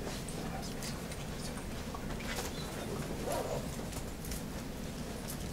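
A young man speaks through a microphone in a large echoing hall.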